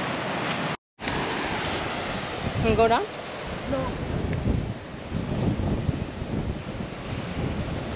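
Waves wash onto a rocky shore in the distance.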